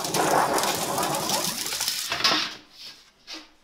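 A thin metal sheet rattles and wobbles as it is rolled by hand.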